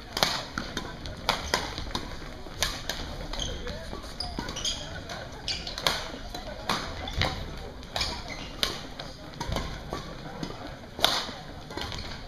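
Rackets strike a shuttlecock back and forth, echoing in a large hall.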